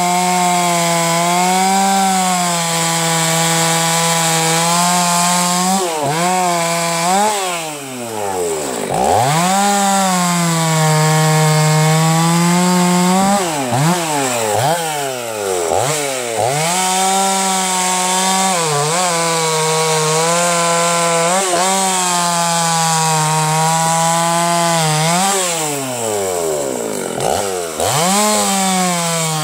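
A chainsaw engine roars loudly while cutting logs, revving up and down.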